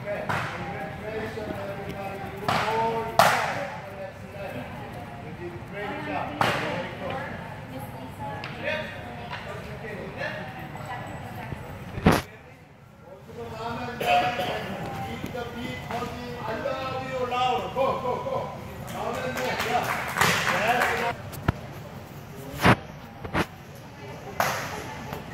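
People talk in the background of a large, echoing hall.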